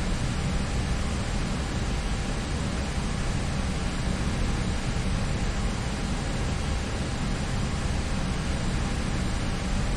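Jet engines hum and roar steadily, heard from inside an airliner's cockpit.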